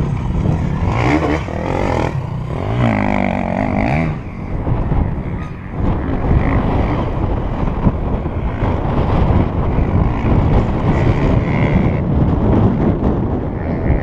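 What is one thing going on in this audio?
An enduro dirt bike engine drones in the distance.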